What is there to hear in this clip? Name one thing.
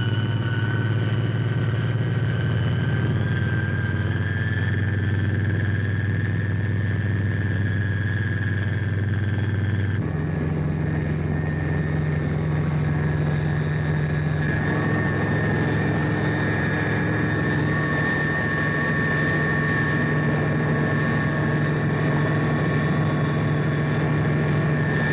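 An aircraft engine drones steadily and loudly close by.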